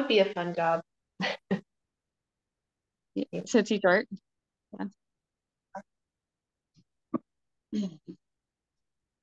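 A woman talks with animation over an online call, in bursts with pauses.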